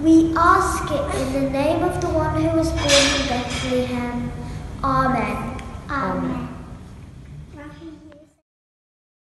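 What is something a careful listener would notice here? A young girl sings into a microphone in an echoing hall.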